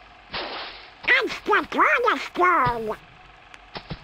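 A man shouts excitedly in a squawky, duck-like cartoon voice.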